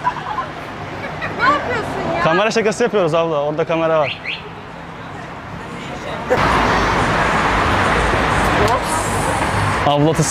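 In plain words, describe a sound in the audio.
A crowd of people chatters on a busy street outdoors.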